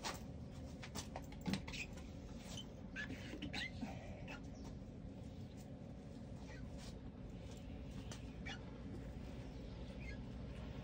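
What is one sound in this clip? A squeegee squeaks and scrapes against window glass.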